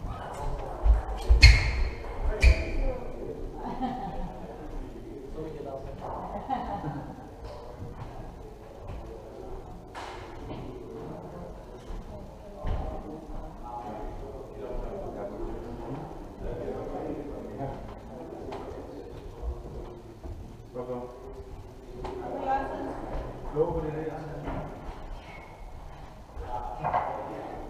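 Table tennis balls click on tables and paddles in a large echoing hall.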